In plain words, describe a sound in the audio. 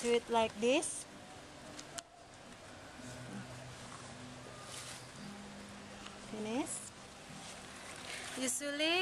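Cloth rustles softly as hands tuck it in.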